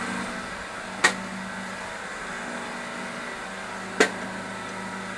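A lid snaps shut onto a metal can with sharp clicks.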